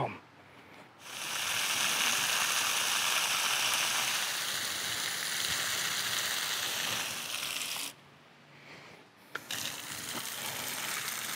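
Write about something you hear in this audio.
A hose nozzle sprays water in a steady hiss.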